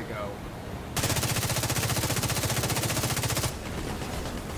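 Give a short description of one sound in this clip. A rifle fires in a rapid automatic burst.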